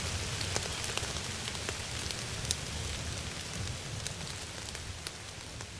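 Loose sand grains trickle and patter softly.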